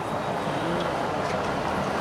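A small motorised vehicle putters by.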